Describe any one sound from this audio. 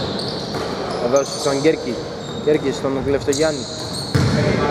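Young players shout to each other across an echoing gym.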